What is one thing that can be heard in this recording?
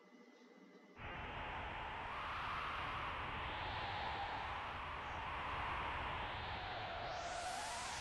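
Wind rushes steadily while a figure flies high over the land.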